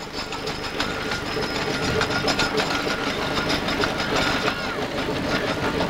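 A steam traction engine chuffs and rumbles as it rolls slowly along.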